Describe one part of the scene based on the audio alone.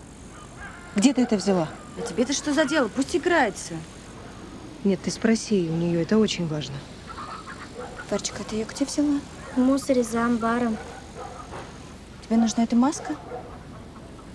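A young woman speaks up close.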